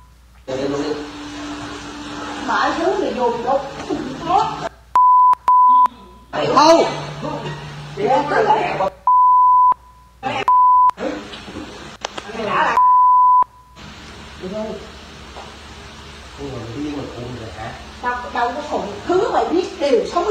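A young woman speaks calmly and clearly into a microphone.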